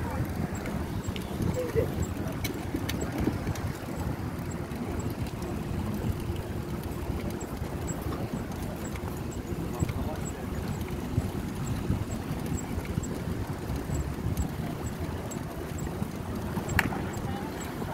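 Wind rumbles steadily across a microphone outdoors.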